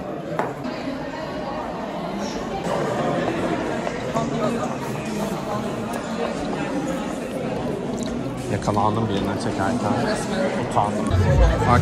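A crowd of people chatters in an echoing hall.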